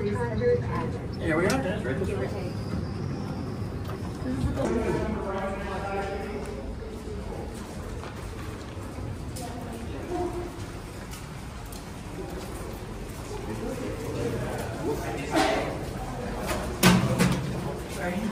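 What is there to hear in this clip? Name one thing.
Men and women talk nearby in casual conversation.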